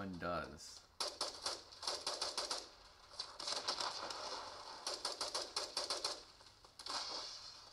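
Rapid gunfire crackles from a small handheld game speaker.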